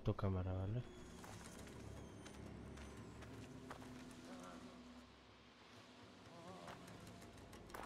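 A young man talks quietly into a close microphone.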